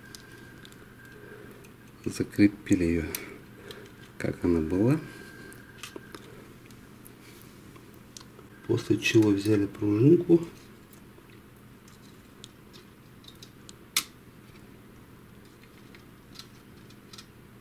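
Plastic and metal parts click and rattle as they are handled.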